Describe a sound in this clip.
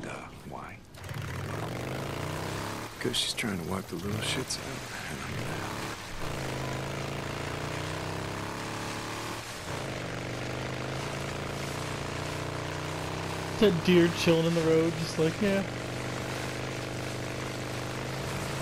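A motorcycle engine starts and hums steadily, revving up and down as the bike rides.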